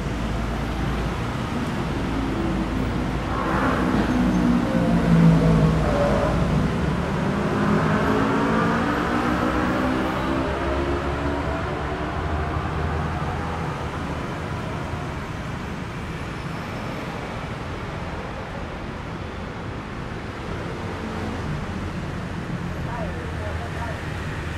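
Traffic drones steadily along a nearby street.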